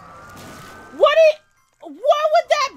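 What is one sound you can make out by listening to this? A young man screams loudly into a microphone.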